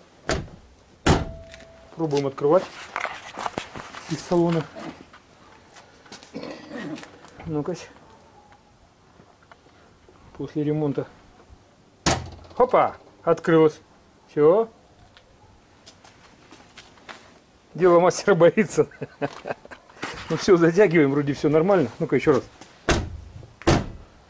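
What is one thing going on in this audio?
A car's boot lid slams shut with a thud.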